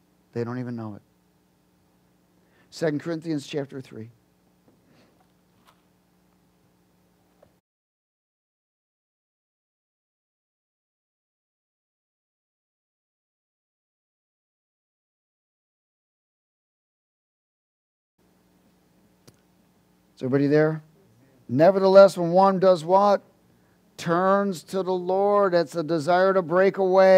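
A man speaks with animation into a microphone, in short bursts with long pauses.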